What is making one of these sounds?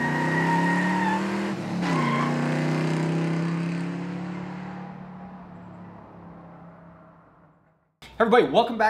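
A car engine idles, briefly revs, then slowly fades away.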